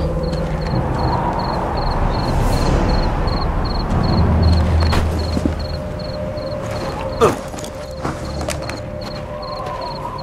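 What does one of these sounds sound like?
Footsteps crunch softly on stone and gravel.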